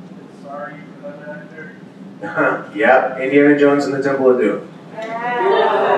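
A man speaks calmly into a microphone, heard through a loudspeaker in a large room.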